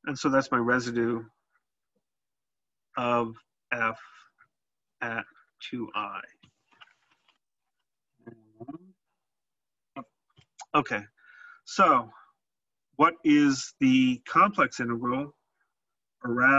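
A man explains calmly through a microphone, in short phrases with pauses.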